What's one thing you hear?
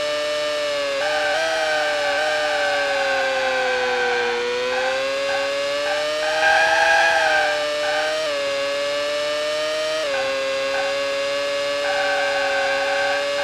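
Tyres screech on the track while cornering.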